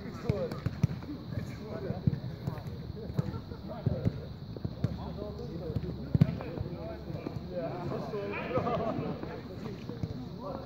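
A football is kicked back and forth with dull thumps.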